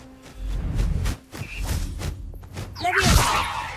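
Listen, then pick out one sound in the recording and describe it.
Hooves thud on grassy ground as an animal gallops.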